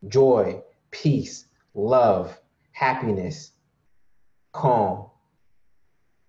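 A young man speaks calmly into a microphone over an online call, in short phrases.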